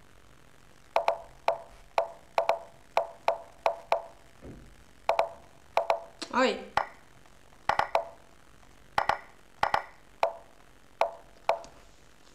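Short tapping tones sound for chess moves in quick succession.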